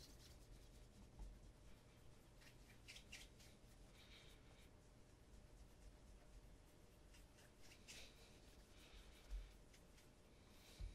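A cloth rubs softly against shoe leather.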